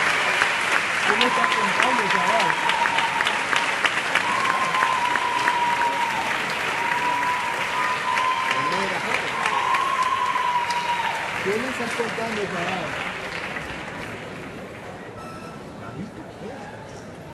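Music plays loudly over loudspeakers in a large hall and fades out.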